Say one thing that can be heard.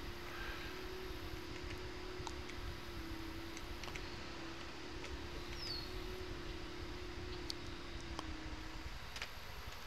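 A small engine hums steadily as a riding vehicle drives along.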